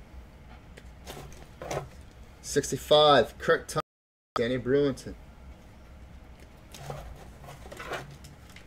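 Plastic card cases click and rustle as they are handled.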